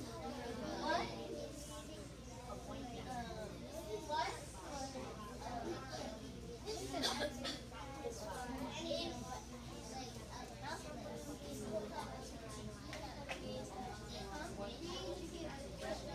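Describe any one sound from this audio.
Young children chatter and call out together.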